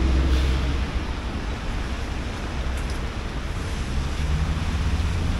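Traffic rumbles steadily along a wet street.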